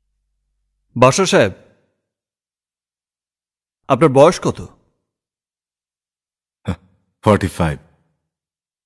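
A man speaks loudly and sharply.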